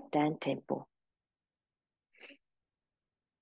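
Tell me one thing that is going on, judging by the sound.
A woman speaks calmly, giving instructions through a microphone.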